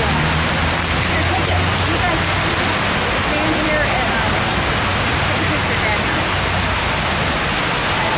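Water rushes and splashes steadily down a large waterfall nearby.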